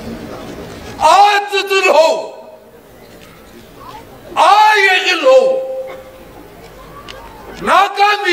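A group of men and women shout back together in chorus.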